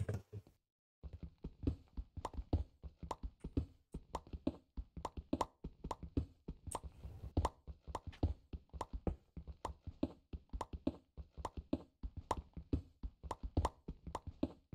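A pickaxe chips rapidly at stone in quick repeated clicks.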